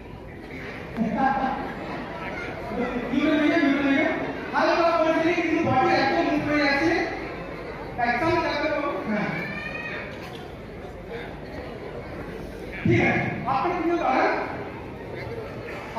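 A man speaks into a microphone with animation, heard through loudspeakers in an echoing hall.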